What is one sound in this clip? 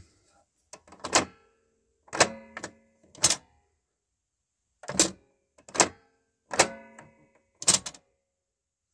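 Plastic toy buttons click sharply, one press at a time.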